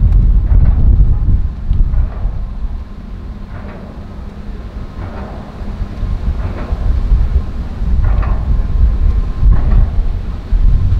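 A motorboat engine drones steadily across the water.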